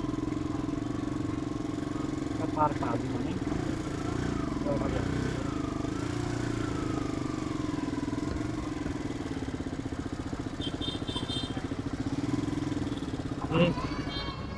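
A motorcycle engine hums steadily as it rolls slowly along.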